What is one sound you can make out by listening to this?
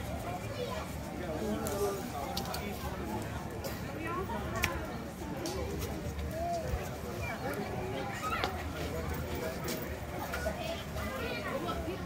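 A crowd murmurs and chatters all around outdoors.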